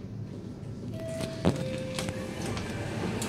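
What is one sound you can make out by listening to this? An elevator chime rings two soft tones.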